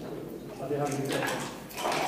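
A button on a game clock is pressed with a click.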